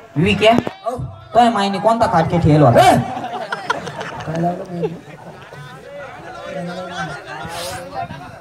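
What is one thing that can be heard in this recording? A man speaks loudly and with animation through a microphone and loudspeakers.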